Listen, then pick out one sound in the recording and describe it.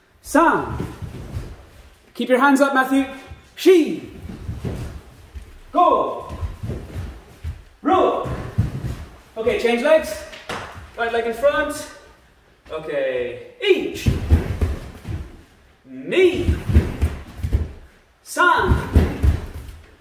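A man shouts sharp counts and calls in a large echoing hall.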